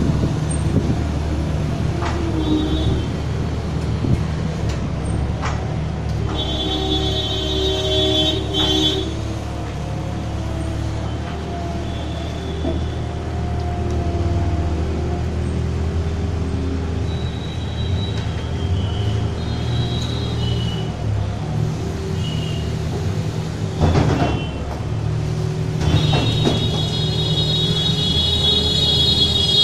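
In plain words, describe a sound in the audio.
A diesel loader engine rumbles and whines steadily close by.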